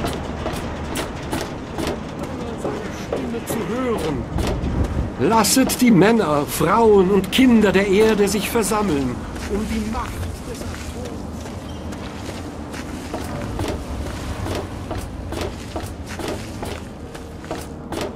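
Footsteps clank on metal walkways.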